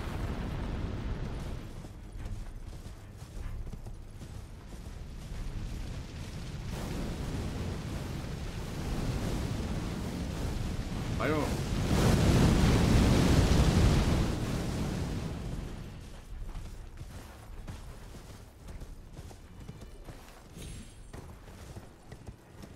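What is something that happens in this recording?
Hooves thud steadily as a horse gallops.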